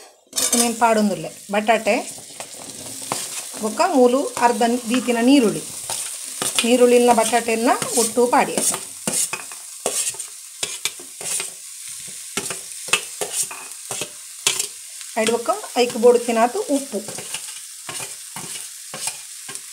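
Chunks of potato tumble off a metal plate into a pan.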